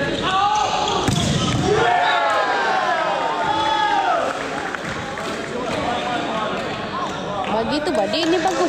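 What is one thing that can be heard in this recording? A crowd cheers and shouts loudly throughout.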